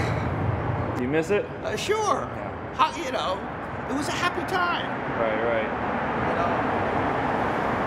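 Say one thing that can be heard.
An elderly man speaks cheerfully, close by.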